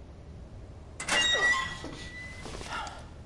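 A metal door creaks open.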